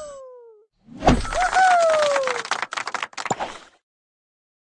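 A bright victory jingle plays with a falling chime.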